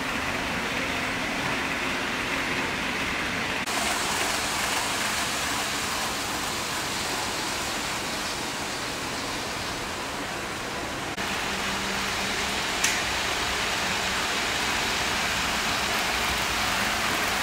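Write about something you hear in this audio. Small model trains whir and rattle along their tracks.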